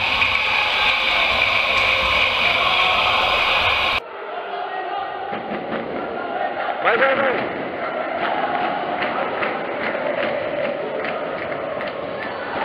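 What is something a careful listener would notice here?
A crowd of spectators murmurs and cheers in a large echoing hall.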